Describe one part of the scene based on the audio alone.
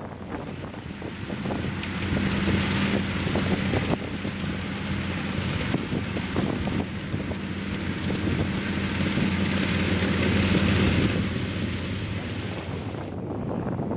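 A hay tedder's rotating tines whir and rustle through the grass.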